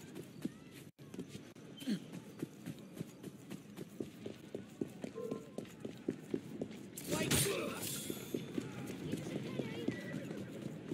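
Quick footsteps run over stone.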